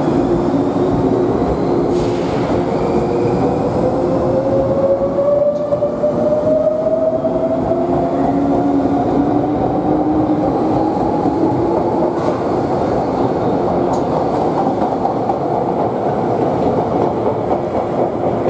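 A train rushes past with a loud steady rumble.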